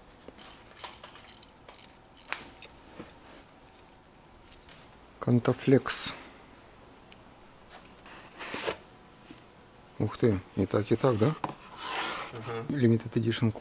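Cardboard and objects rustle and knock as hands sort through boxes.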